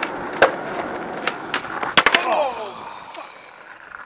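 Skateboard wheels roll over rough pavement.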